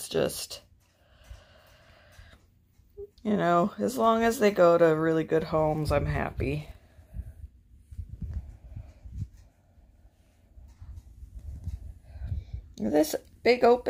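A hand rubs softly against fur and a fabric cover.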